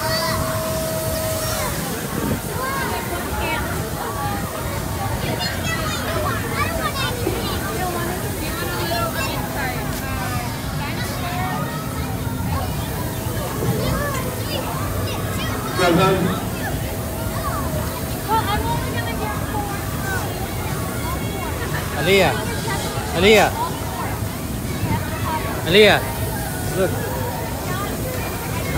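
A crowd of people chatters all around outdoors.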